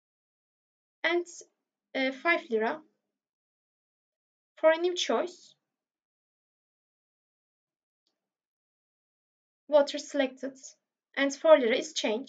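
A young woman speaks calmly into a close microphone, in short bursts with pauses.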